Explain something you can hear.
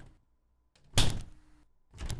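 A ruler slaps down with a sharp crack.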